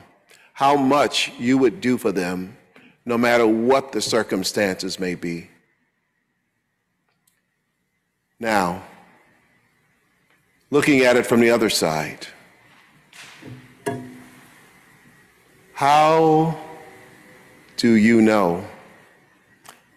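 A middle-aged man preaches with feeling into a microphone, his voice echoing in a large hall.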